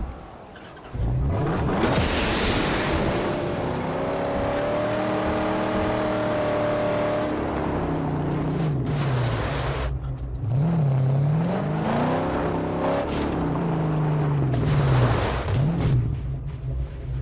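A car engine roars and revs as it drives fast.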